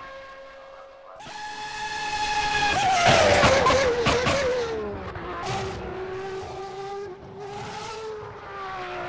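A racing car engine screams at high revs, its pitch swelling as it passes close and then dropping away.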